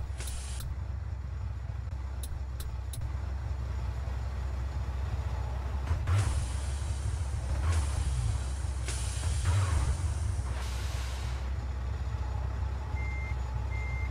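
A heavy truck engine rumbles steadily at idle.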